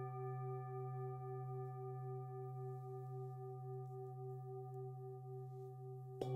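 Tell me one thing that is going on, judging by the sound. A singing bowl rings with a steady, wavering hum.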